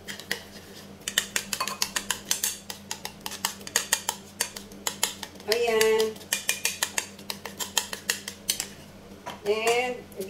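A spoon whisks quickly against a ceramic bowl, clinking rapidly.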